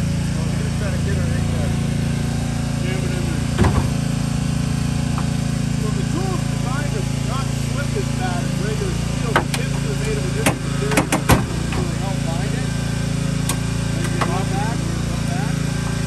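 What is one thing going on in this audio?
A hydraulic power unit engine drones steadily nearby.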